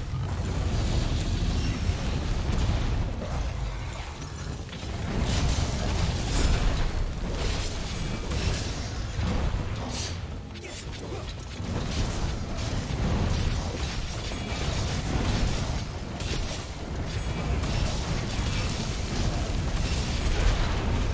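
A sword clangs and slashes against a monster.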